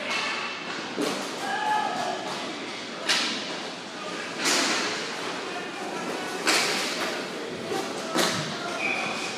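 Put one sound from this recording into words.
Hockey sticks slap a ball with sharp cracks.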